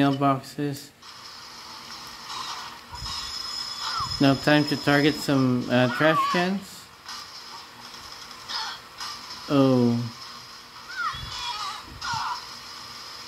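A handheld game console plays game sounds through a small speaker.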